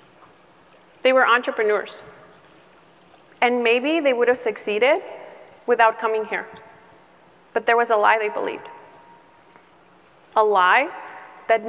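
A young woman speaks into a microphone in short bursts with pauses.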